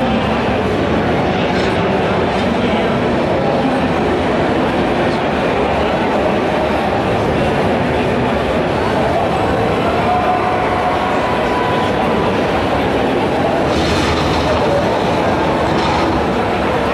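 Gunfire from a video game crackles from loudspeakers.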